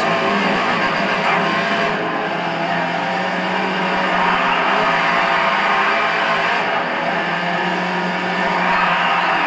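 A racing car engine roars loudly and steadily, rising and falling in pitch as it shifts gears.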